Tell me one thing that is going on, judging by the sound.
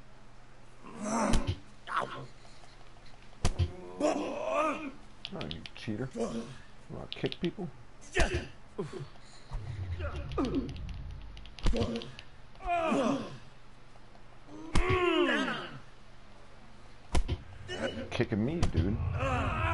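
A man grunts and groans while brawling.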